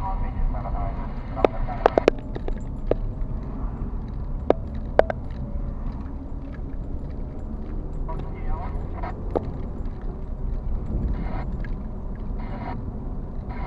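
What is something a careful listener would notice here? A car engine hums steadily from inside while driving slowly.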